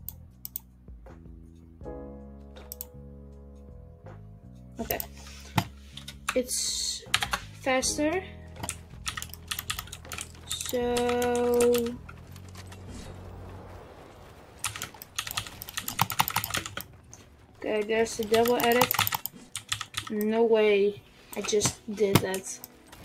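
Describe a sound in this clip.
Keyboard keys clatter quickly and unevenly, close by.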